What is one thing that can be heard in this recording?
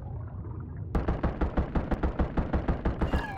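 A gun fires a fast run of rapid shots.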